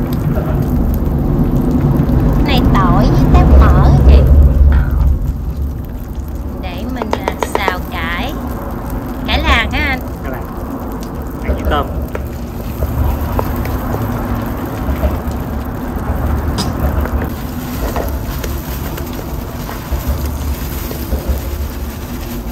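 Food sizzles and fries in a hot pan.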